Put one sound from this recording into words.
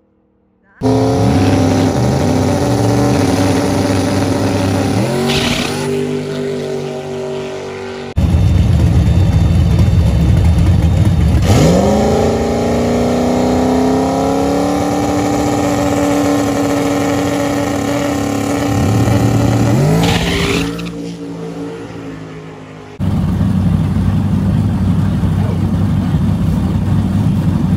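A car engine rumbles loudly and unevenly up close.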